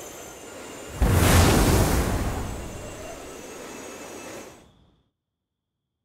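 A deep magical burst booms and then fades.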